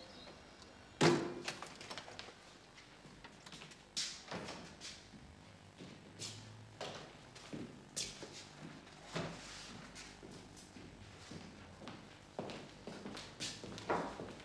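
Footsteps and knocks sound across a hard floor.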